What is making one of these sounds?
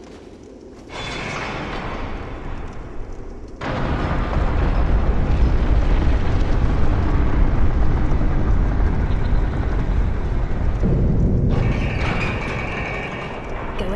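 A heavy stone mechanism grinds and rumbles.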